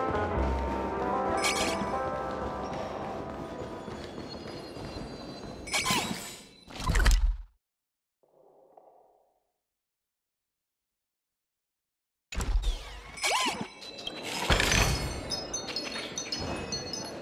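Game music plays with soft synth tones.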